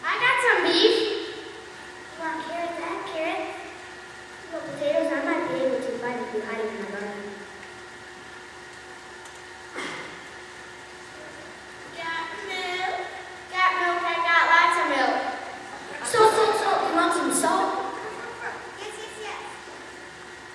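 Children on a stage speak their lines loudly in a large hall.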